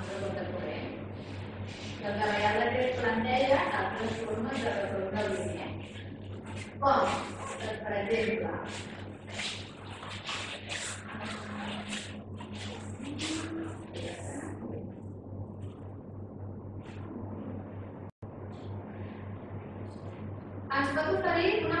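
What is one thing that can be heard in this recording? A young woman speaks calmly into a microphone, heard through a loudspeaker in a room.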